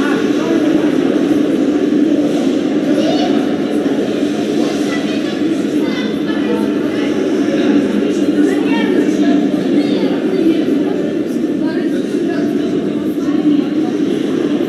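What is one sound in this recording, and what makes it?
People chat in a large echoing arena.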